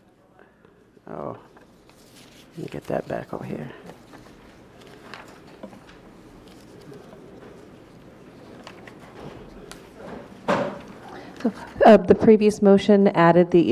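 A woman speaks calmly into a microphone, reading out.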